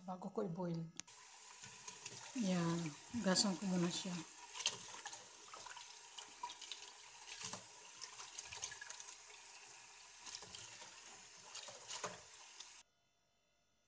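Water runs from a tap into a pot of lentils.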